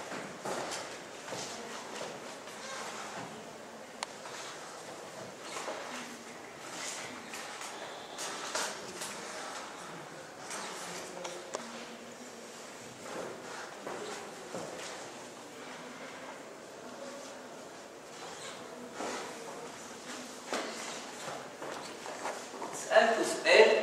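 A man lectures calmly in an echoing room, heard faintly from a distance.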